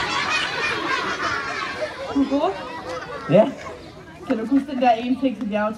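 A crowd of children cheers and shouts outdoors.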